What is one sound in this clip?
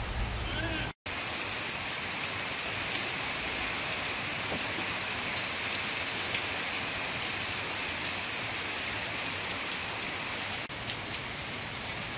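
Steady rain falls and patters outdoors.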